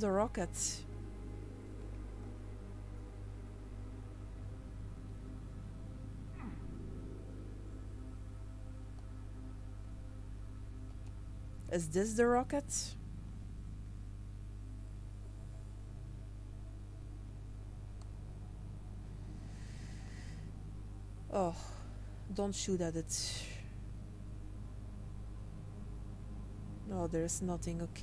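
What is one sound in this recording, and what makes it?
A young woman speaks briefly into a headset microphone.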